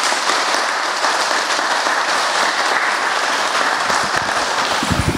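A crowd applauds steadily nearby.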